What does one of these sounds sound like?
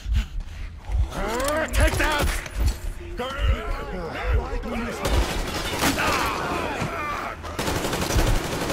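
A creature shrieks and howls.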